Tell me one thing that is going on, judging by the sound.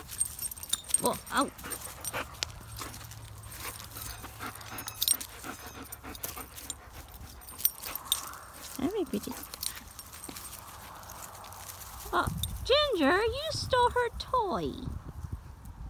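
A dog whines with high, wavering cries.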